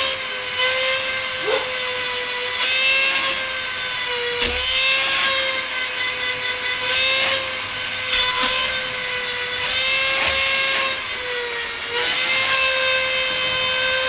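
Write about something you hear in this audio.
A grinding stone buzzes against metal in short, repeated bursts.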